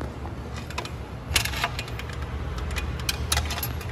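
Metal tools clink and tap against a motorcycle frame.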